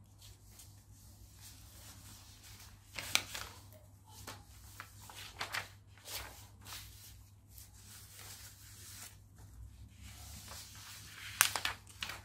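Sheets of paper rustle and crinkle as they are handled.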